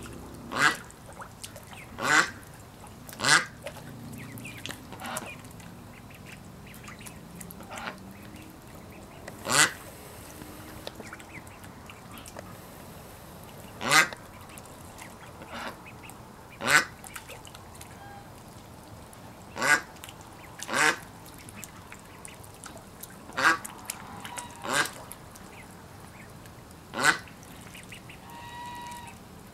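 Ducklings dabble and splash in shallow water.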